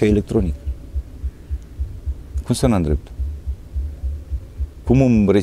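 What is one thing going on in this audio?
A middle-aged man speaks calmly and close into a clip-on microphone.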